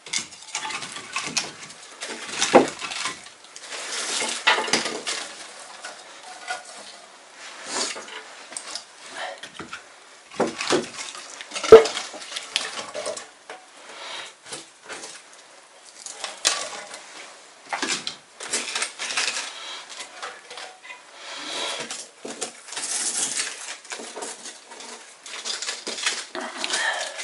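A man handles objects close by, with knocks and rustling.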